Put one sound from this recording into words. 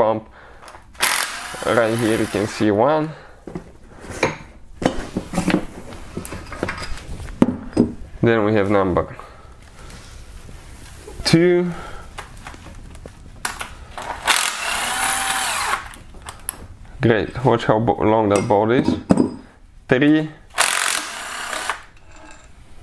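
An impact wrench whirs and rattles in short bursts.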